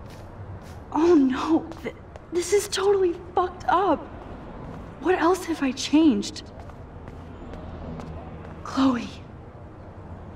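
A young woman exclaims in distress and calls out.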